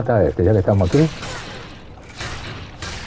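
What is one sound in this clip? A metal blade clangs against metal.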